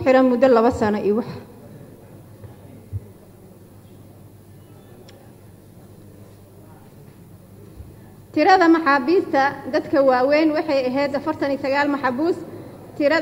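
A woman speaks calmly and formally into a microphone.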